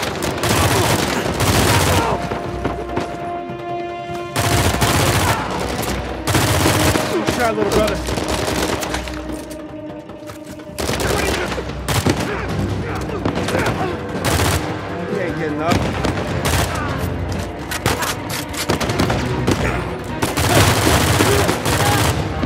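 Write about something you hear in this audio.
Automatic rifle fire rattles in loud bursts.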